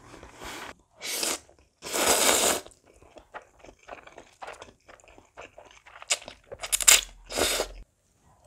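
A young woman slurps noodles loudly and quickly.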